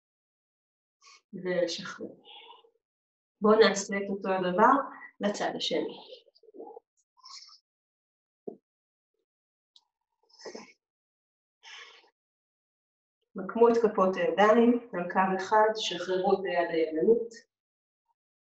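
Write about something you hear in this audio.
A woman speaks calmly and clearly into a nearby microphone.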